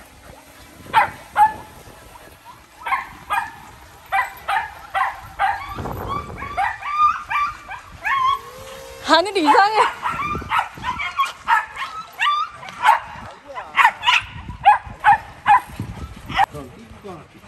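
Several dogs bark sharply, over and over.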